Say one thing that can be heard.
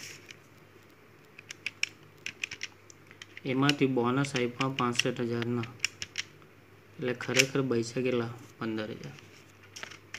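Calculator keys click as they are pressed.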